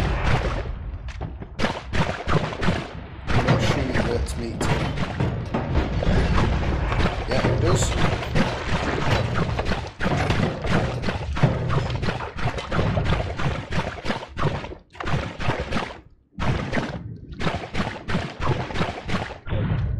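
Game magic zaps and crackles with bursts of sound effects.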